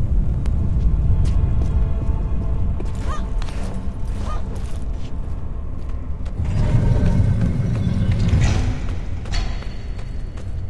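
Hands and feet knock on the rungs of a metal ladder during a climb.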